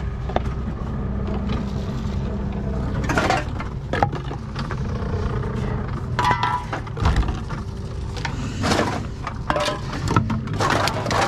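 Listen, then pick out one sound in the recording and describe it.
Empty cans and bottles clatter and clink as they are handled.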